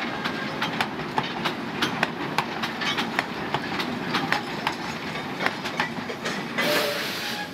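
Freight wagons rumble and clatter past on rails close by.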